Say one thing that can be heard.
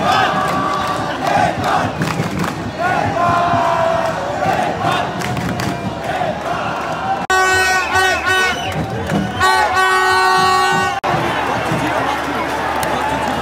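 A large crowd of young men chants and cheers loudly in a stadium.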